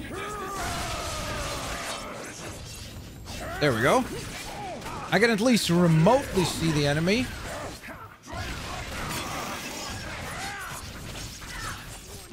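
Metal claws slash and swish through the air.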